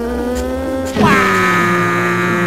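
Water splashes loudly as a kart falls in.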